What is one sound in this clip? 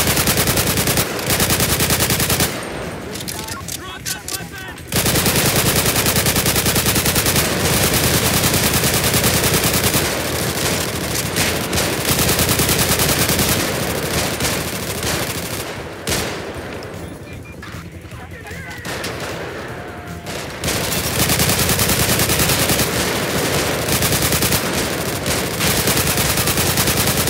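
An assault rifle fires rapid bursts at close range.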